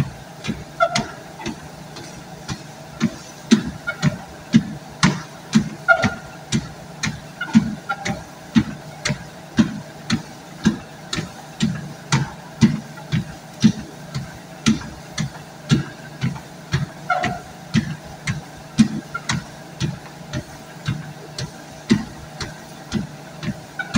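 Footsteps thud steadily on a running treadmill belt.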